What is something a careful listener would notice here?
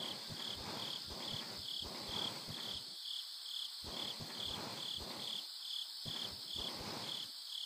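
Footsteps thud steadily across hollow wooden boards.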